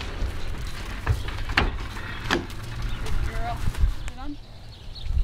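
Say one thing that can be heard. A horse's hooves clatter and thump on a trailer floor.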